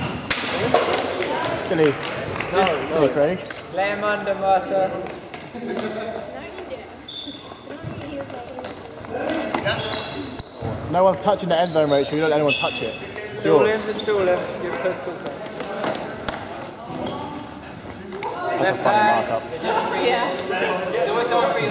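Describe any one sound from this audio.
Young women call out and laugh in a large echoing hall.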